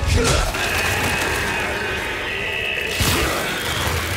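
Molten sparks burst and crackle.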